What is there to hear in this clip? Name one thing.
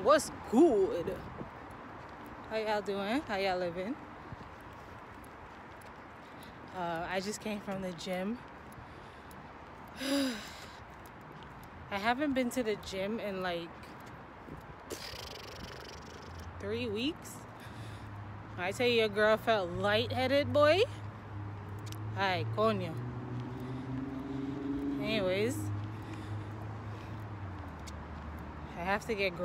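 A young woman talks calmly and close, in short bursts with pauses.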